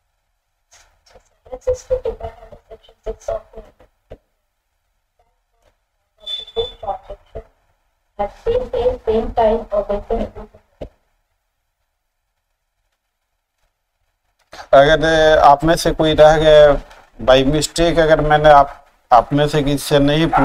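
A middle-aged man speaks into a microphone in an online call, pausing now and then before speaking louder and with animation.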